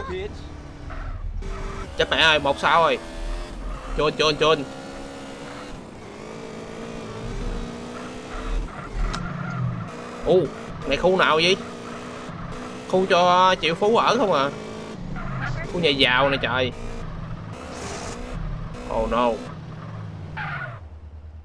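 A motorcycle engine revs and hums.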